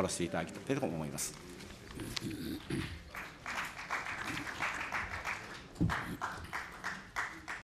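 A middle-aged man speaks firmly into a microphone in a large hall.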